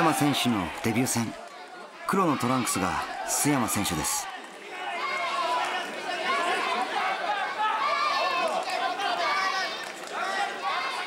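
A crowd of spectators shouts and cheers in a large hall.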